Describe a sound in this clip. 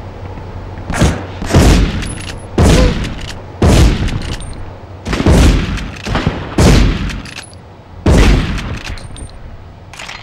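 Gunshots boom in quick succession, echoing each time.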